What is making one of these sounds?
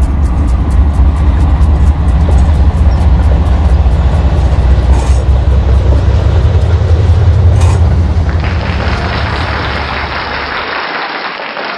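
A model train rumbles along the track with a steady low hum.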